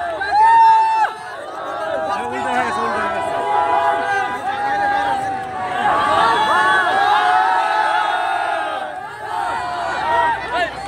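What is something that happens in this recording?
A large crowd of young men and women cheers and screams excitedly close by.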